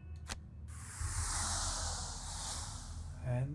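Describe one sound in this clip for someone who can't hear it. A magical blast whooshes and crackles loudly.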